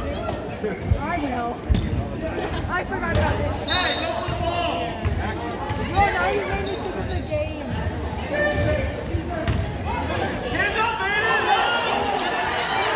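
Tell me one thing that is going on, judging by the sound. Young players shout and call out across an echoing gym.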